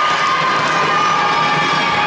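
A volleyball bounces on a wooden floor.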